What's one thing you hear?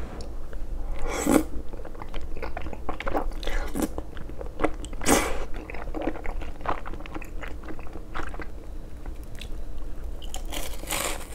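A young man slurps noodles loudly close up.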